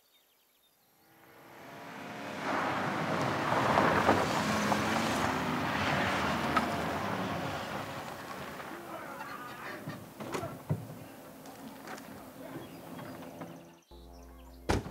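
A van engine approaches and idles to a stop.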